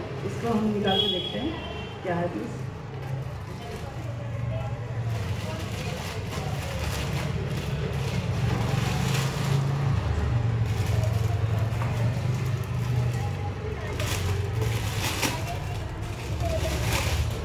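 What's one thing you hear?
Plastic wrapping crinkles and rustles in a woman's hands.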